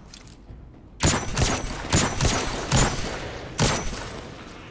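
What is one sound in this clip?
A rifle fires several sharp shots in quick succession.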